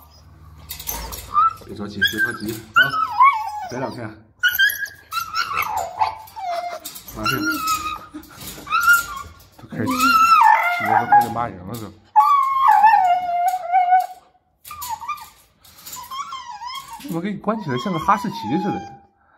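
A puppy whines in high, wavering cries close by.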